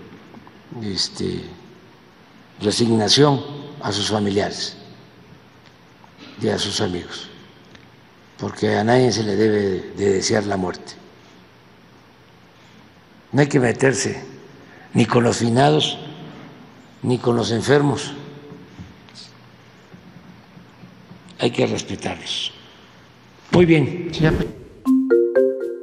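An elderly man speaks slowly through a microphone, with long pauses.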